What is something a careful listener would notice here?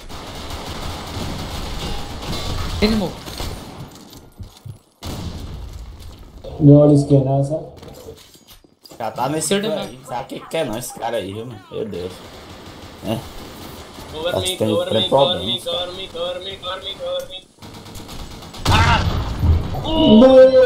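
Rapid gunfire rattles from a rifle.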